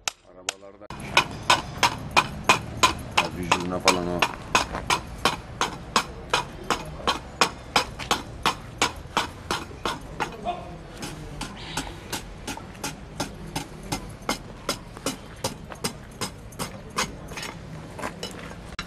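A hammer taps nails into a horse's hoof with rapid, steady blows.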